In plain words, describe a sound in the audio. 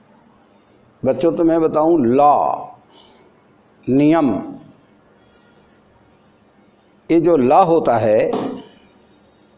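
A young man speaks calmly close by, with pauses.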